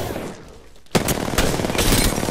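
A gun fires in rapid bursts of shots.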